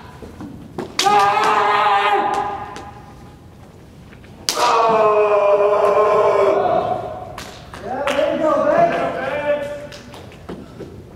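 Young men shout loud, drawn-out battle cries in an echoing hall.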